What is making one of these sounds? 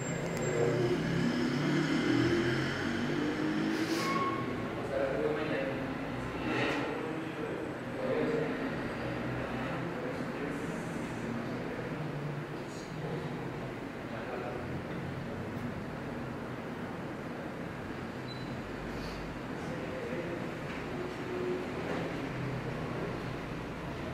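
A man speaks calmly, a little way off.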